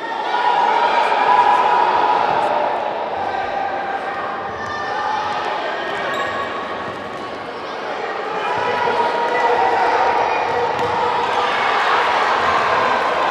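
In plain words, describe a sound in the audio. Children shout across a large echoing hall.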